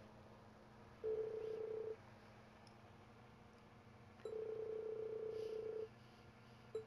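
A soft electronic tone buzzes steadily in short bursts.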